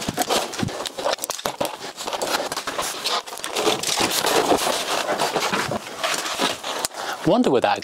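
A man rummages through tools and parts with clattering knocks.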